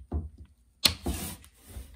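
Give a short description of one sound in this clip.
A metal clamp clicks shut on wood.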